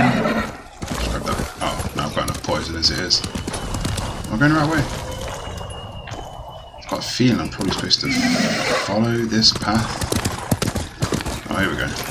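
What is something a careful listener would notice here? A horse's hooves gallop over snowy ground.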